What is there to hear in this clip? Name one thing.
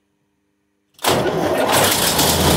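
A large diesel engine starts up and roars loudly close by.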